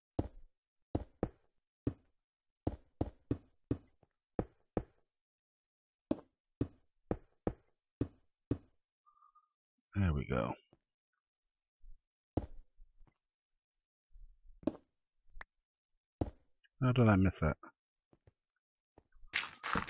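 A pickaxe chips at stone blocks in quick, sharp knocks.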